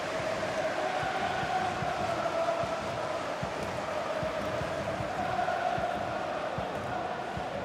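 A large stadium crowd cheers and chants loudly throughout.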